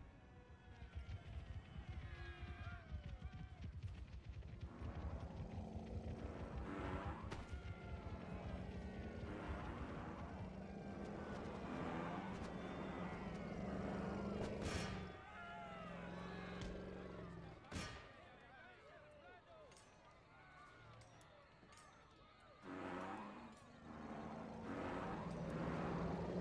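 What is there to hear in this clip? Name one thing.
Elephants trumpet and bellow.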